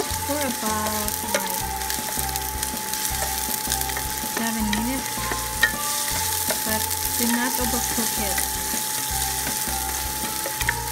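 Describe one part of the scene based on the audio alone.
A silicone spatula stirs onions against a nonstick pan.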